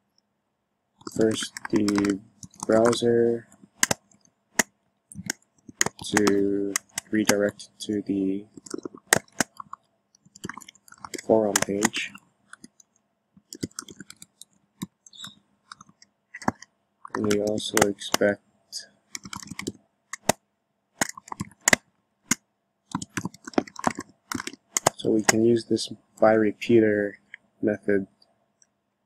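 Keys click on a keyboard in quick bursts.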